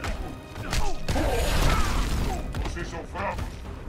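A car crashes down and explodes with a loud boom.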